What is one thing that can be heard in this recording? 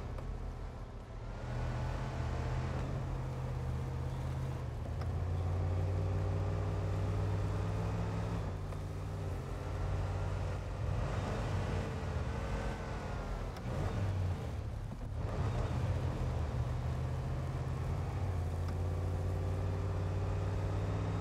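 A truck engine rumbles and revs as it drives on a rough road.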